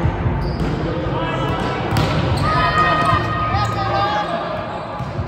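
Young women call out to each other in a large echoing hall.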